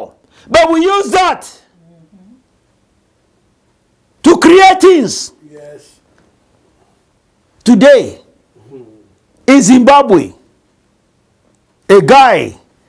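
A middle-aged man preaches loudly and forcefully in short bursts, with pauses between them.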